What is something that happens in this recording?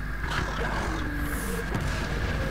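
A fireball whooshes past.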